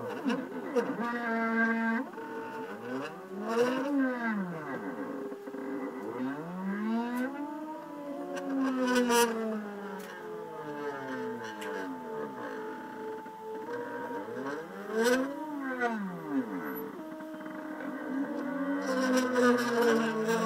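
Stepper motors whine, rising and falling in pitch as a plotter moves.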